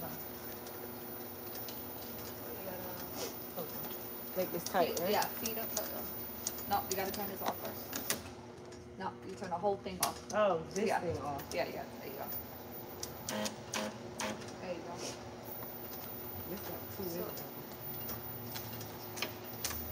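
A labelling machine hums steadily close by.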